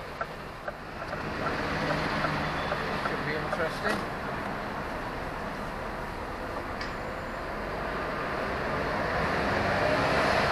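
A truck's engine grows louder as the truck pulls away and drives along.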